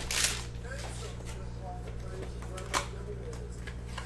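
A cardboard box is torn open with a rustle.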